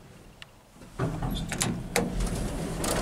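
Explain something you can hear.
An elevator button clicks as it is pressed.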